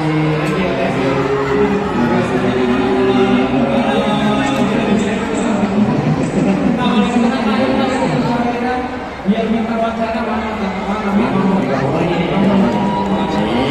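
A large crowd murmurs in the background.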